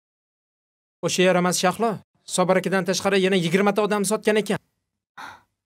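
A young man speaks earnestly, close by.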